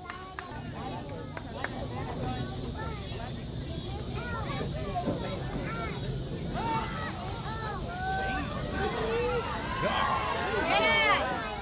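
A crowd of young boys shouts and cheers outdoors.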